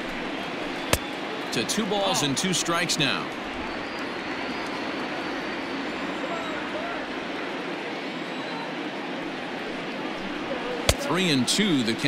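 A baseball smacks into a catcher's mitt.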